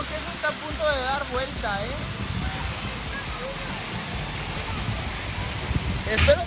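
Young children shout and call out playfully nearby.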